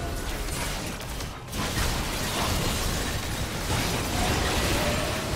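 Video game spell effects crash and whoosh during a fight.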